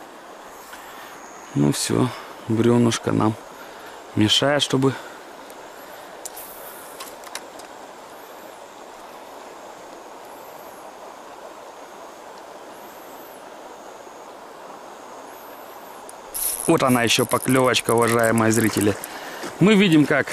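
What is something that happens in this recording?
A river flows gently.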